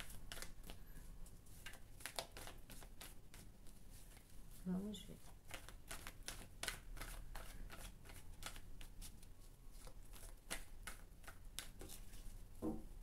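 Playing cards riffle and snap as they are shuffled by hand.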